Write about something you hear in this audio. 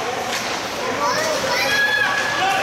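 Spectators shout and cheer in a large echoing rink.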